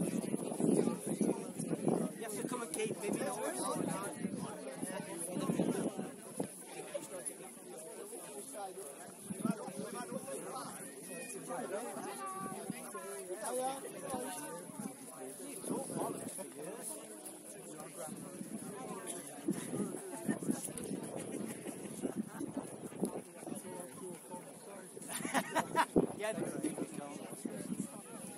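A group of young players talks in a huddle at a distance.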